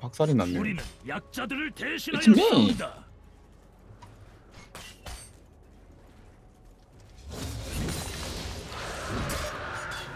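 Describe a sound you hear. Weapons clash and magic bursts crackle in a fast battle.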